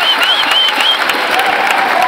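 An audience cheers and whistles.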